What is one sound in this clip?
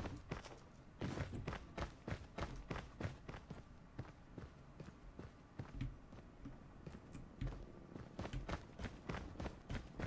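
Footsteps tap rapidly in a video game.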